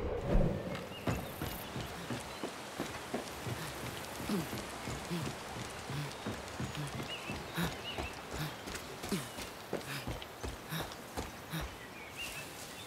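Footsteps thud steadily on wooden planks and a dirt path.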